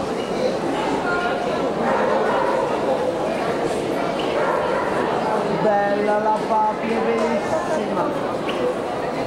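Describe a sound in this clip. A man speaks into a microphone, heard through a loudspeaker in a large echoing hall.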